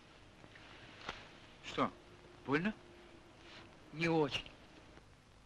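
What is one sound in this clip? A man speaks quietly and tensely close by.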